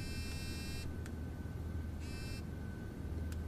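A phone rings briefly.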